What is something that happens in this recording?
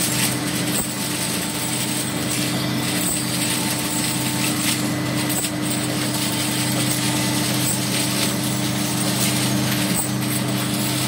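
A packaging machine hums and rattles steadily.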